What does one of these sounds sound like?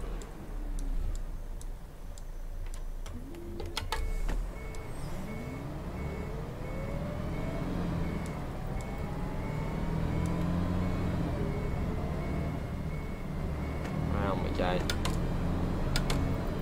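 A bus engine rumbles and revs up as it pulls away.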